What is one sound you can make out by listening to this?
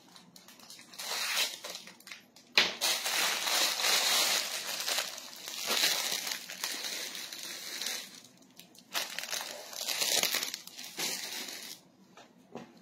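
Plastic bags crinkle and rustle.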